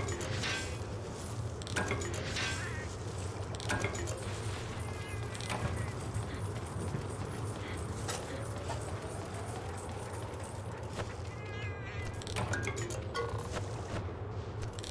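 Footsteps run over rocky ground.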